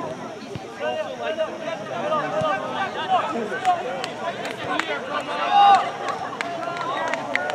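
Players call out to each other across an open field.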